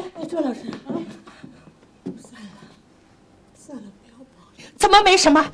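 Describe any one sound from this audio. An elderly woman speaks softly and shakily.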